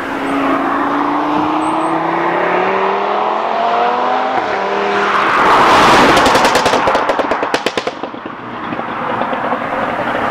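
A car engine hums as it approaches, then roars past close by and fades away.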